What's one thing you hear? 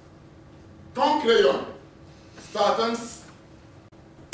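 A man speaks slowly and declaims on a stage, with a slight echo.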